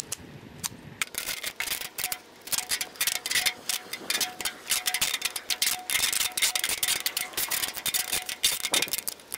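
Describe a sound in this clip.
Sticky tape crackles and crinkles as it is wound tightly around plastic.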